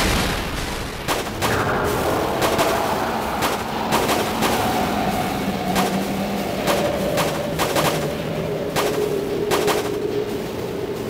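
A large creature bursts apart in a loud, crackling explosion.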